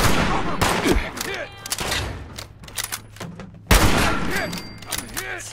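A shotgun fires loud booming shots that echo.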